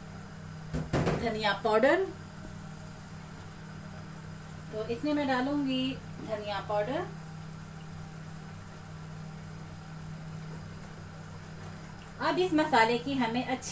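Food sizzles softly in a pot.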